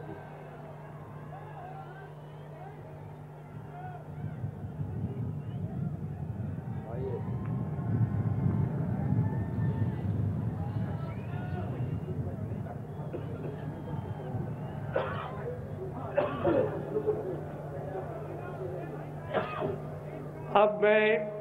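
An elderly man speaks slowly into a microphone over loudspeakers outdoors.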